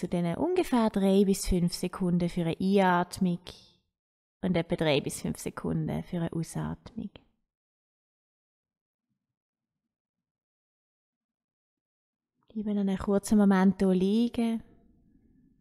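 A woman speaks calmly and slowly, close by.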